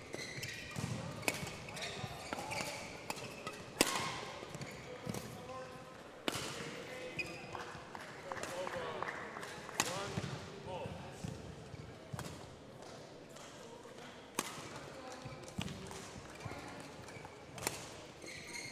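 Rackets strike a shuttlecock back and forth in a sharp, irregular rally.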